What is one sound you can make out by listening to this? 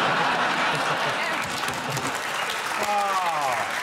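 A studio audience laughs loudly.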